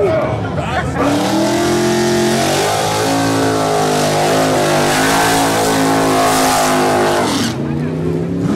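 Car tyres spin and screech on the track.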